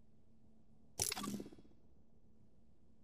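A bright confirmation chime rings out and quickly fades.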